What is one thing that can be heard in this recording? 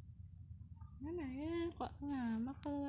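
A kitten meows loudly several times.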